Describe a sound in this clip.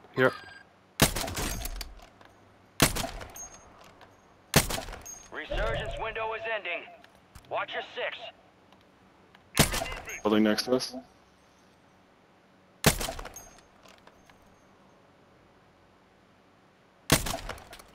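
A rifle fires sharp, loud single shots with a short echo, several times.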